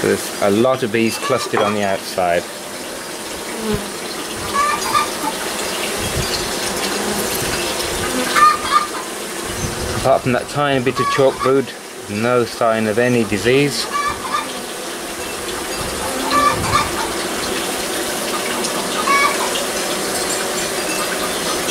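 Bees buzz loudly in a dense swarm.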